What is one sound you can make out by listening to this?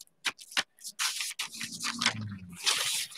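Paper rustles as it is peeled up.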